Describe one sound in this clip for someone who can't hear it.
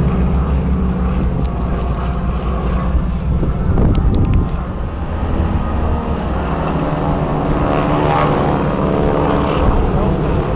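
Propeller plane engines drone overhead, rising and falling in pitch.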